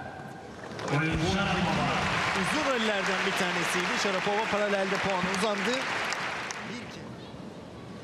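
A large crowd cheers and applauds in an echoing arena.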